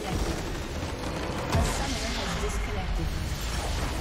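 A large structure explodes with a deep boom.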